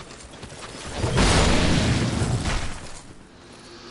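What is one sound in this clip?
A heavy blade slashes and strikes with a loud crash.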